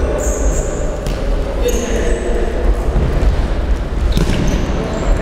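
A ball is kicked with a dull thud in a large echoing hall.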